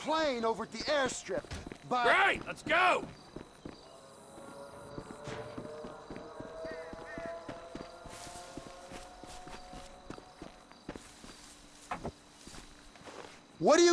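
Footsteps run over dry ground.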